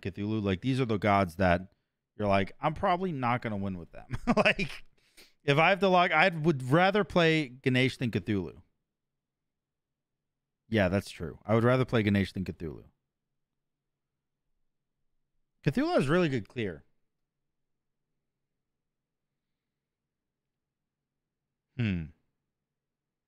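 A young man talks casually into a close microphone, in bursts with pauses.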